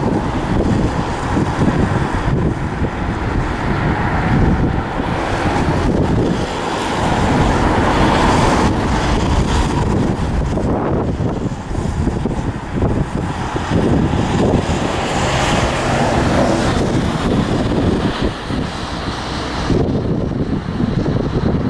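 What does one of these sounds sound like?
A diesel locomotive rumbles steadily as it hauls a freight train along the tracks.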